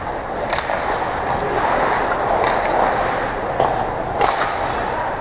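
Hockey sticks clack against a puck now and then.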